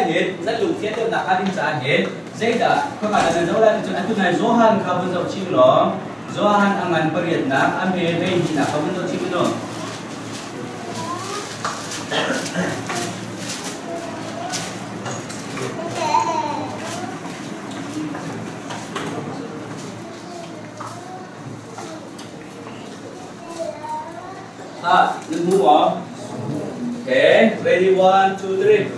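A man speaks in a lecturing tone.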